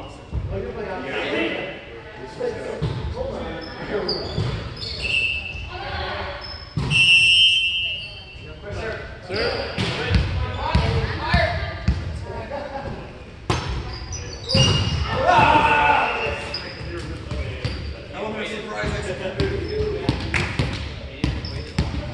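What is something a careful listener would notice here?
Young men call out and talk loudly in a large echoing gym.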